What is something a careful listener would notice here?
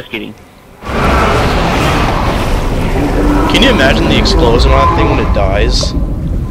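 A huge creature smashes through a metal structure with a deep, heavy crash.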